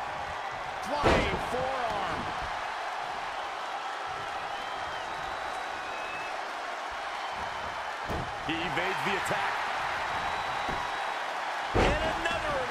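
Bodies slam onto a wrestling mat with heavy thuds.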